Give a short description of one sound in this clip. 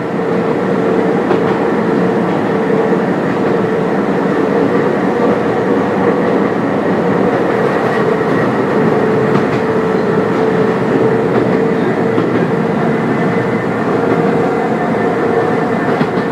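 Train wheels clack and squeal on the rails.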